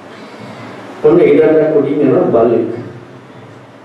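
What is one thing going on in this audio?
A man speaks calmly into a microphone, heard through a loudspeaker in an echoing room.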